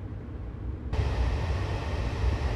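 A train's rumble turns into a louder rushing roar as it crosses a bridge.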